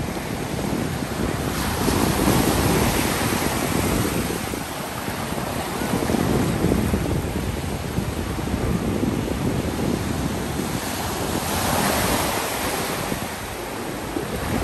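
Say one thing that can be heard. Waves break and wash up onto the shore close by.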